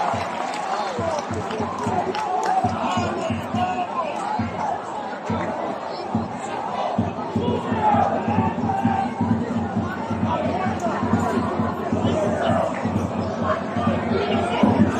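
A crowd of spectators chatters and calls out nearby, outdoors.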